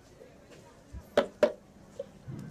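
Plastic cups knock against a hard counter.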